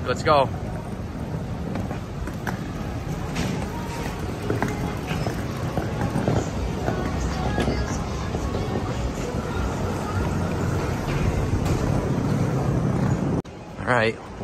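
Suitcase wheels rumble over pavement.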